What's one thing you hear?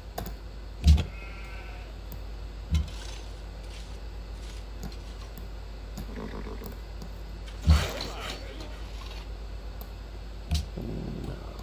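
A computer mouse clicks sharply a few times.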